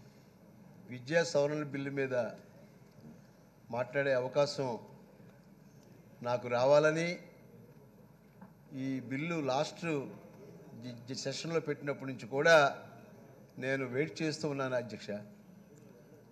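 A middle-aged man speaks forcefully through a microphone.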